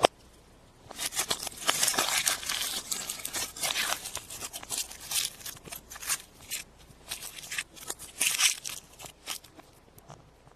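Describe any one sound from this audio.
Foil wrapping crinkles and rustles.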